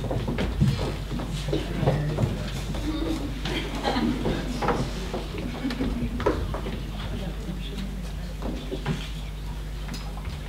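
Footsteps shuffle and knock on a wooden stage.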